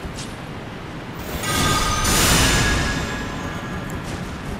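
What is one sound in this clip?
A shimmering magical whoosh swells and slowly fades.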